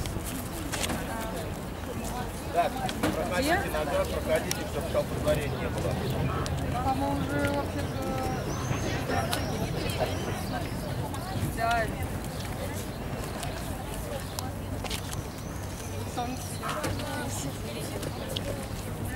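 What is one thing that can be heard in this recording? A crowd of women and children chatter outdoors, close by.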